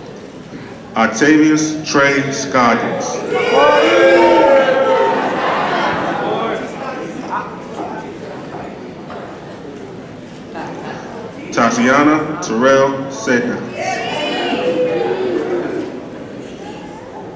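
A man reads out names over a loudspeaker in a large echoing hall.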